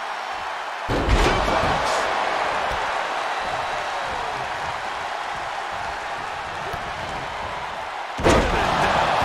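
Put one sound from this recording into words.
Bodies slam down hard on a wrestling ring mat.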